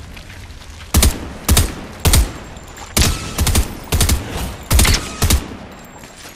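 Rifle shots fire in a quick series.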